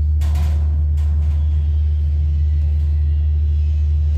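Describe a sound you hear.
A cloth rubs over a metal surface.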